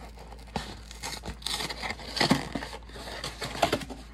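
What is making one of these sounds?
A cardboard box flap is pulled open with a tearing sound.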